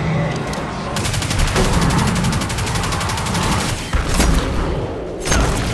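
A rapid-fire weapon shoots in quick bursts.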